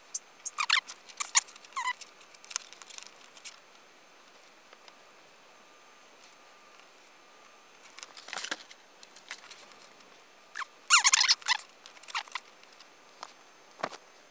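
Plastic toy parts click and snap as hands twist them into place.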